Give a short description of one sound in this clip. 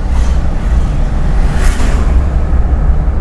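A bus rushes past close by.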